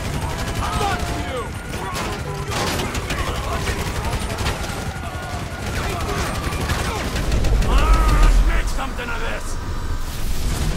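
Police sirens wail nearby.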